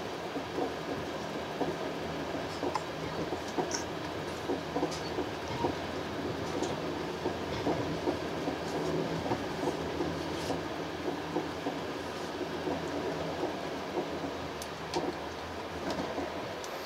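Train wheels click and clatter over the rail joints.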